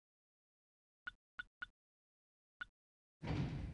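Menu buttons click a few times.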